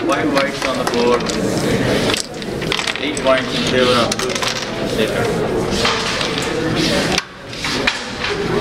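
Wooden game pieces click and clack together on a board.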